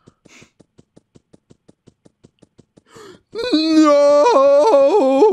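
Quick, even footsteps tap.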